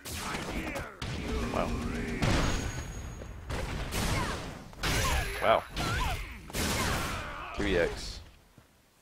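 Heavy punches and slams land with loud thuds.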